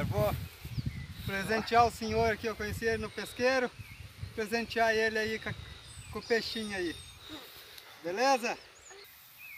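A man speaks close by, outdoors.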